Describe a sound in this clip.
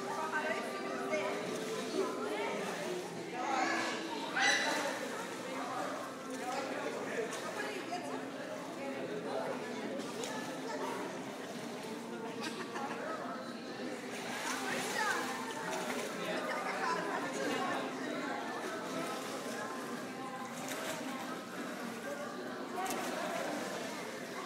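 A swimmer splashes through the water.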